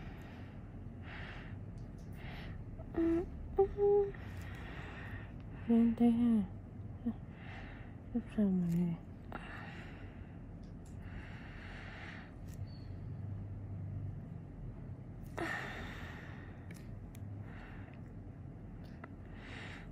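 A fine needle scrapes softly against skin.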